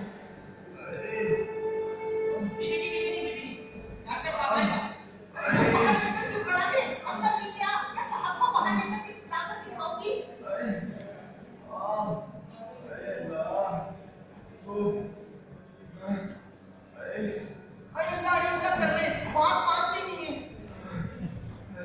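A man and a woman speak loudly and with feeling in a large echoing hall, heard from a distance.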